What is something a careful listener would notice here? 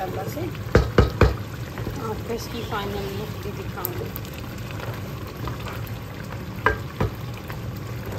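A wooden spoon knocks and scrapes against a metal pot.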